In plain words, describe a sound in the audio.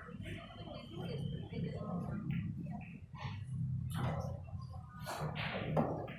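Pool balls knock together and roll across the table.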